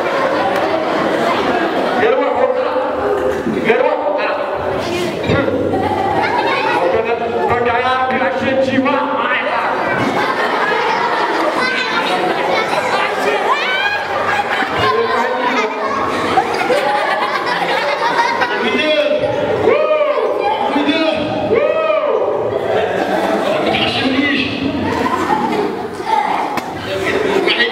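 A young man speaks with animation into a microphone, heard through loudspeakers in an echoing hall.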